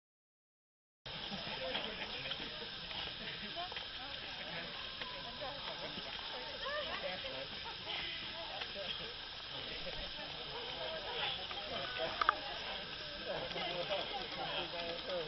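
A crowd of men and women chatters and calls out nearby outdoors.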